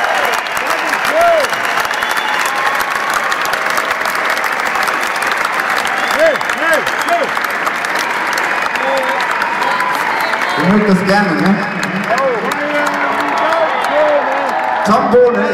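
A large crowd chatters and cheers loudly in a big hall.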